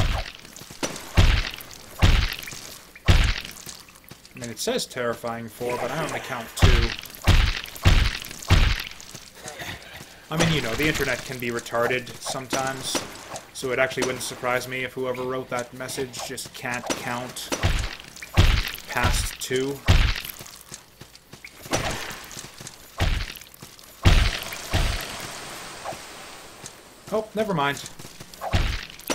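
Sword strikes thud and slash in quick, heavy blows.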